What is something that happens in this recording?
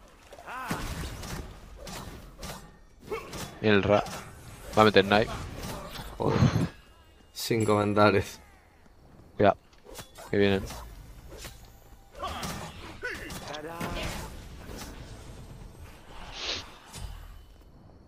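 Game sound effects of clashing weapons and magic blasts ring out.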